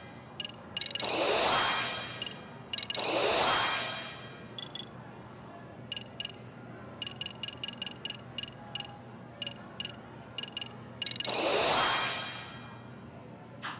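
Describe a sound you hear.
A bright chime rings out with a sparkling swoosh as a new skill unlocks.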